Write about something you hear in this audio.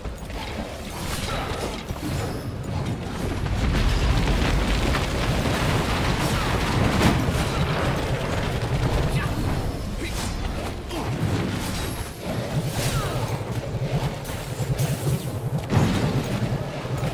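Magic spells crackle and burst in quick succession.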